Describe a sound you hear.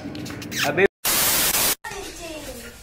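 A burst of harsh static hisses.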